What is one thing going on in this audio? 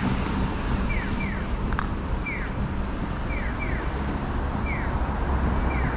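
A car drives slowly past on a street.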